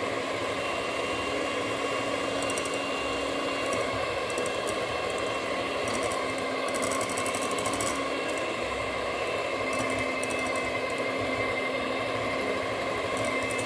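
Mixer beaters rattle and scrape against a glass bowl.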